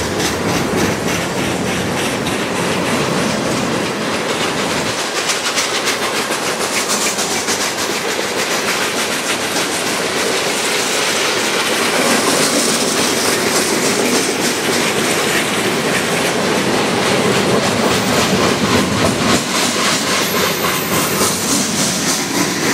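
Steel wheels clatter rhythmically over rail joints.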